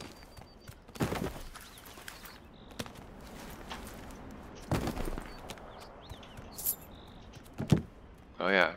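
A heavy thud sounds as someone lands from a jump.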